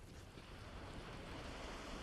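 Fires crackle nearby.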